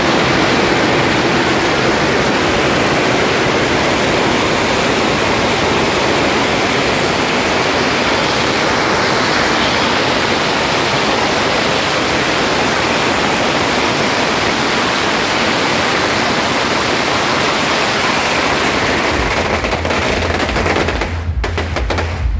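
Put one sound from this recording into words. Firecrackers crackle and pop in a loud, dense, unbroken rattle nearby.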